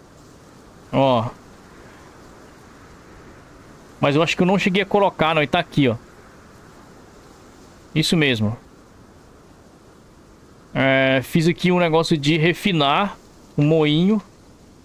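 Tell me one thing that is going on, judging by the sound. A young man talks animatedly into a microphone, close by, in short bursts.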